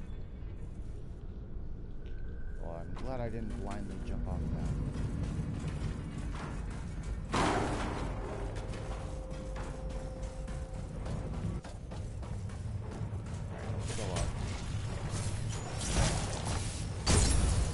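Heavy metal footsteps clank on metal floors.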